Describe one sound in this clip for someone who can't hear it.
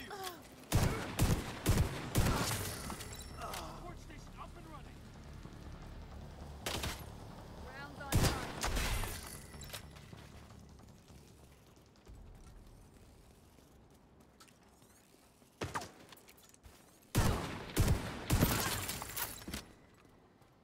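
Gunshots ring out in short, sharp bursts.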